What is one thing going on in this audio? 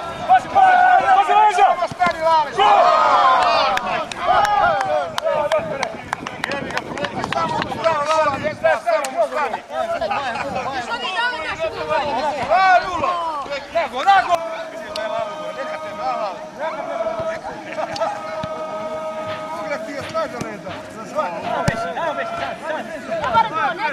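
A football thuds as it is kicked on grass.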